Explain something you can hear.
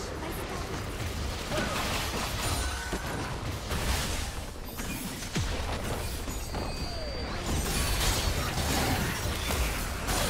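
Game spells and attacks clash and crackle in a fast battle.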